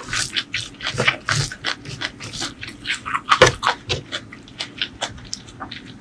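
Fingers squish and mix soft rice.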